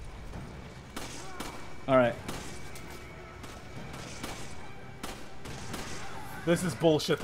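Gunshots ring out one at a time, with short pauses between them.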